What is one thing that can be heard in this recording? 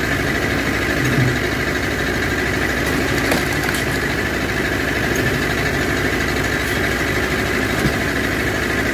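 A log splitter's engine drones steadily.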